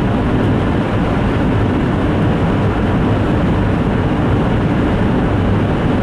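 A car's engine and tyres rumble steadily inside the car as it drives along a highway.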